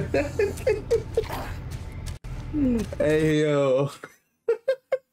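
A young man laughs in short bursts close to a microphone.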